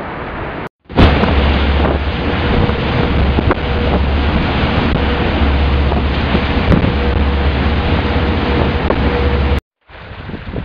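A boat's wake churns and roars loudly.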